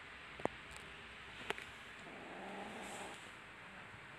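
Kittens scuffle and paw at each other on soft bedding.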